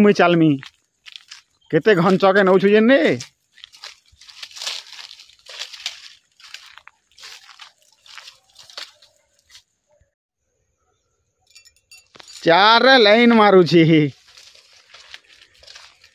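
Footsteps crunch and rustle through dry leaves and brush.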